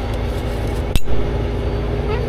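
A metal tow hook clanks against the truck.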